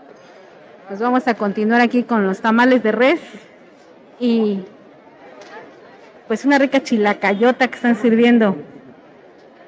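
A woman speaks loudly and close by, with animation.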